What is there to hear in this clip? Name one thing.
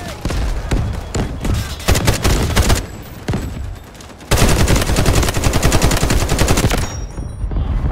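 Rapid gunfire rattles close by.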